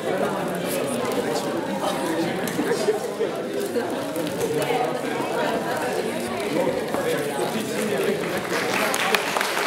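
A large mixed choir sings together in an echoing hall.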